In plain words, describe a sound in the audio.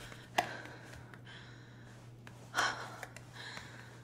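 Footsteps thud on wooden stairs as a woman climbs.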